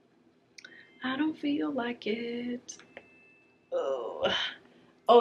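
A young woman speaks playfully and expressively close by.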